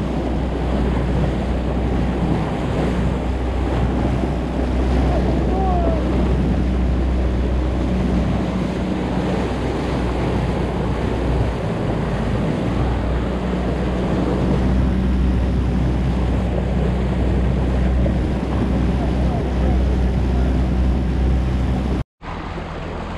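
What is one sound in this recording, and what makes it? An outboard motor roars steadily as a boat speeds along.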